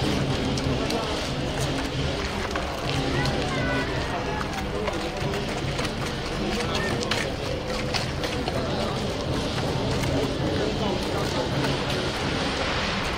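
Men chatter nearby, outdoors.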